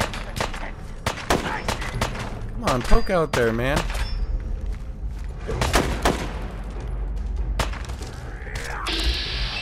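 Gunshots crack sharply in quick bursts.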